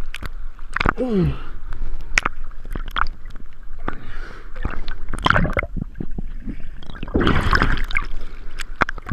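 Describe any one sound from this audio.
Water splashes and gurgles close by, going in and out of the sea.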